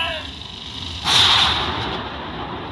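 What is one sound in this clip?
A short victory fanfare plays.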